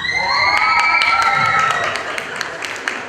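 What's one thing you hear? Children cheer and squeal with excitement.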